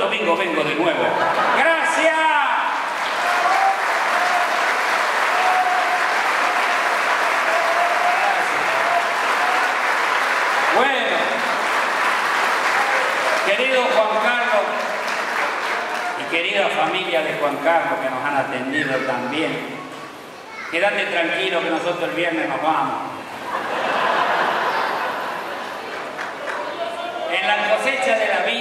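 An older man speaks with animation through a microphone and loudspeakers in a large room.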